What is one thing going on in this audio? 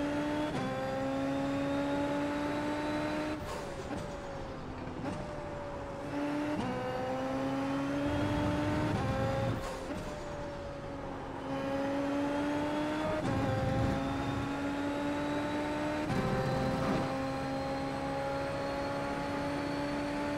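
A racing car engine whines at high revs, rising in pitch and dropping sharply with each gear change.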